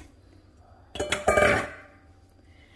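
Raw meat chunks thud and slap into a metal pot.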